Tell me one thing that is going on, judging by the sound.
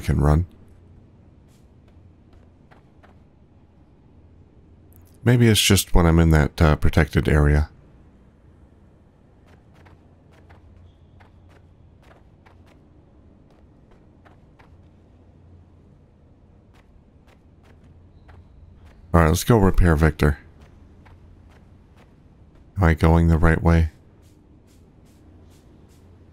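Footsteps patter softly on the ground.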